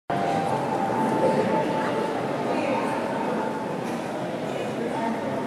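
A group of voices sings together in a large echoing hall.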